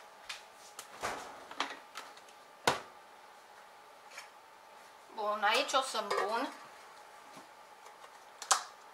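Kitchen utensils clatter and knock against each other.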